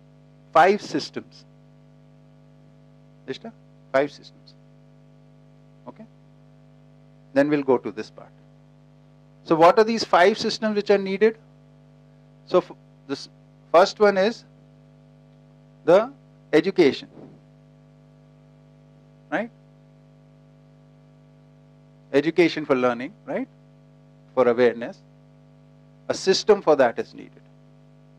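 A middle-aged man speaks calmly through a headset microphone, in short phrases with pauses.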